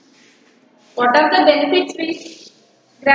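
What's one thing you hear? A young woman speaks loudly and clearly in an echoing room.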